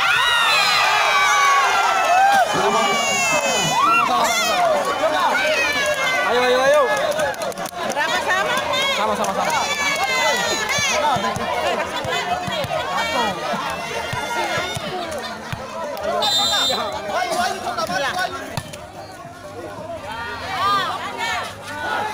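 A volleyball thumps off players' hands.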